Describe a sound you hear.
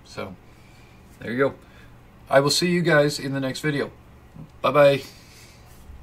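A young man talks casually, close by, in short bursts.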